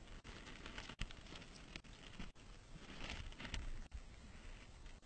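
A hand rubs a cat's fur with a soft rustle.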